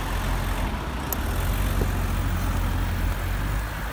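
A car drives past nearby.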